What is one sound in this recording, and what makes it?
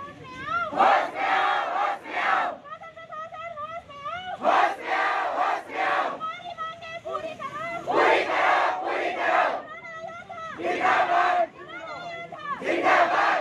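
A man leads the chant, shouting calls between the crowd's replies.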